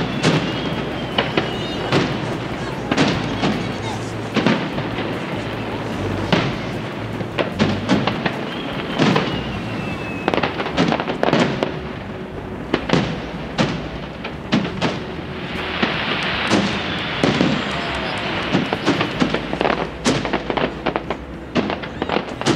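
Fireworks boom and bang loudly, one after another.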